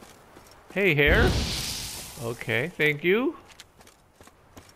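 Flames burst and crackle.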